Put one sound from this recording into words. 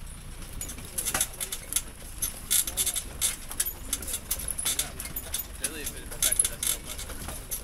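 Tyres crunch and rattle over rough stones.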